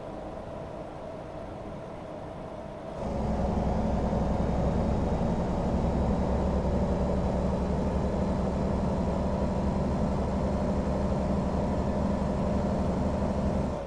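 A truck engine hums low and steady, then grows louder.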